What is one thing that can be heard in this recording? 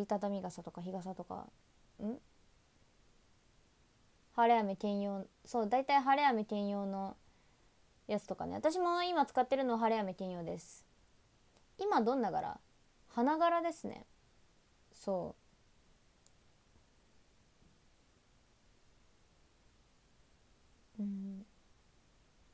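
A young woman talks close to the microphone in short bursts.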